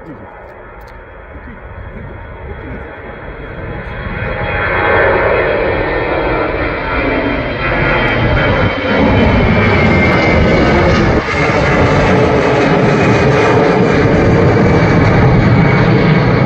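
A jet airliner roars loudly as it takes off and climbs overhead.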